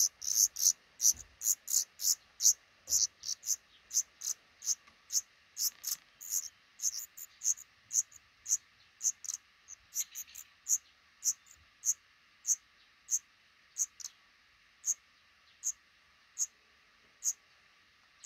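Nestling birds cheep in high, rapid peeps that slowly grow sparser.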